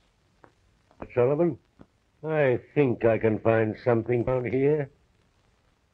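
A middle-aged man speaks nearby in a gruff, animated voice.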